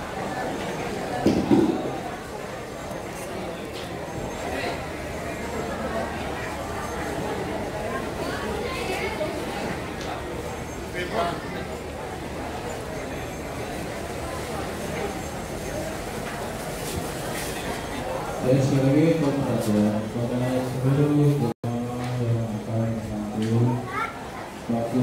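A crowd murmurs and talks in a large echoing hall.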